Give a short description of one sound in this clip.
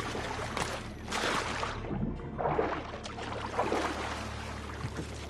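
Water splashes as a man drops into it.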